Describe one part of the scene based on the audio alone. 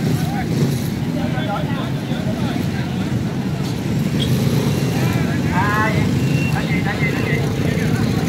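A large outdoor crowd chatters in the distance.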